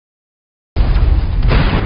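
Spaceship guns fire and explosions boom.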